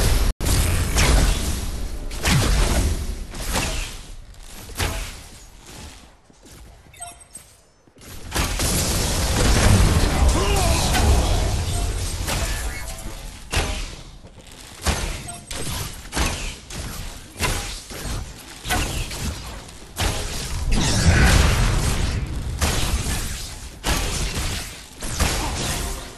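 Rapid energy weapons fire in quick bursts.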